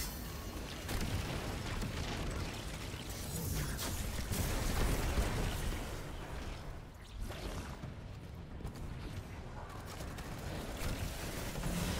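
Electric energy blasts crackle and zap.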